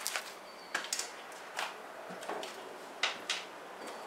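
Wooden boards knock and clatter.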